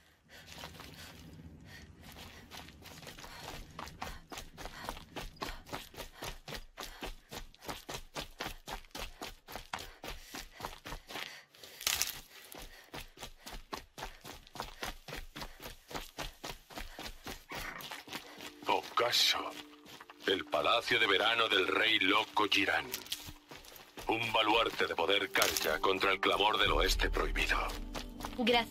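Footsteps run quickly over sand and grass.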